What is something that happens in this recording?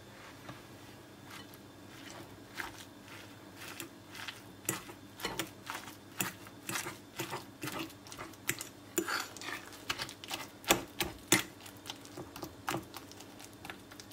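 A fork clicks against a glass bowl while mashing soft roasted eggplant.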